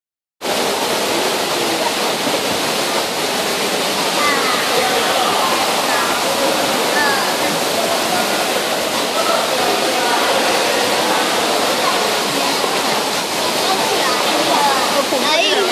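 A woman speaks calmly to a child close by.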